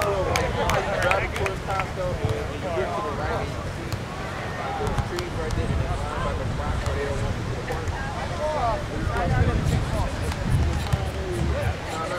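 Several people talk and call out nearby, outdoors.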